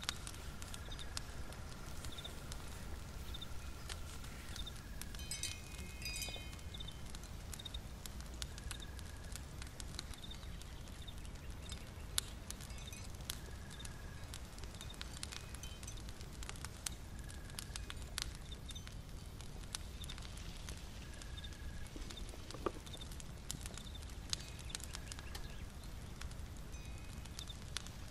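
A fire crackles and pops softly.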